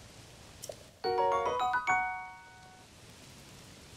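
A bright musical jingle chimes.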